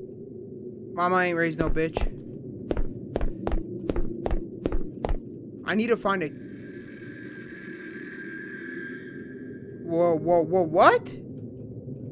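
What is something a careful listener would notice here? A young man speaks and exclaims with animation, close to a microphone.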